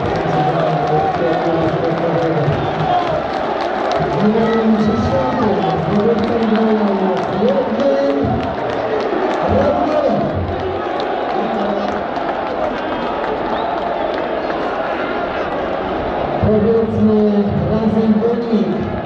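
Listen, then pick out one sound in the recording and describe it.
Many people clap their hands in rhythm.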